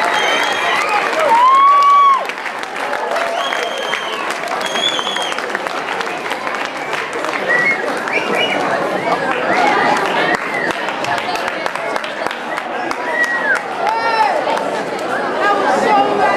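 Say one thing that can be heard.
A young audience shrieks and whoops in a large hall.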